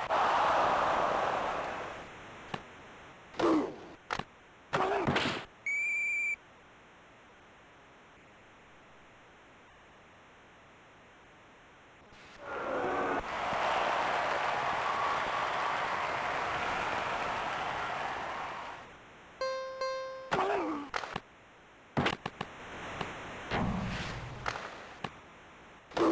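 Hockey sticks knock against a puck.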